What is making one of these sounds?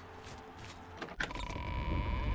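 A heavy wooden door thuds open.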